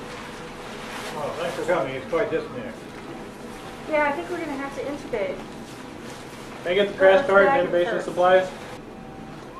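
A man speaks weakly and hoarsely.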